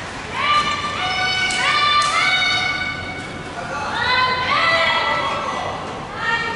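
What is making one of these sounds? Young people shout loudly and sharply in a large echoing hall.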